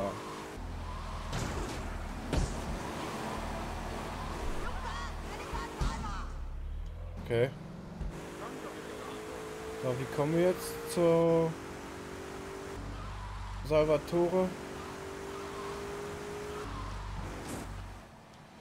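A car engine roars as the car speeds along.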